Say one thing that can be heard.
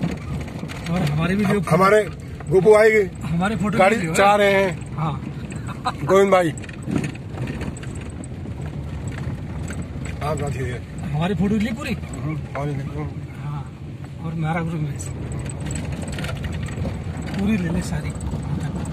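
A man talks with animation close by inside a car.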